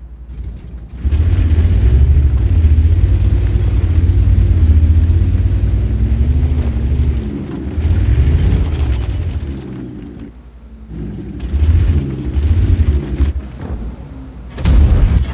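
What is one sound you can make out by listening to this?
A heavy tank engine rumbles and roars as the tank drives.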